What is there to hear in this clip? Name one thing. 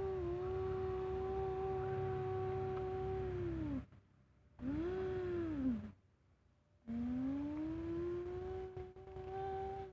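A small toy motor whirs steadily, dipping in pitch as it stops and rising as it starts again.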